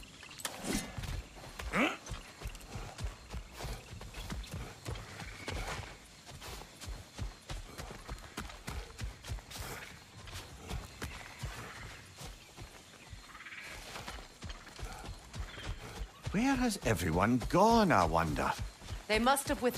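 Heavy footsteps crunch steadily over grass and leaves.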